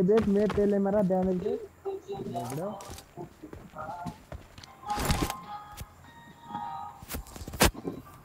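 Footsteps tread on gravel and grass.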